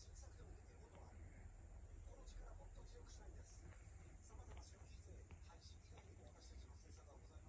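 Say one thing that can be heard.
A cat purrs steadily close by.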